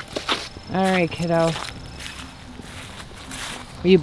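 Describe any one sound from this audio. Footsteps brush through grass.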